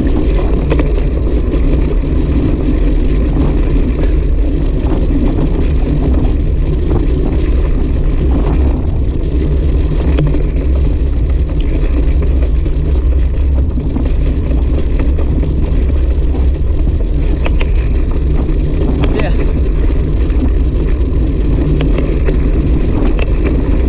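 Wind roars and buffets past a moving motorcycle.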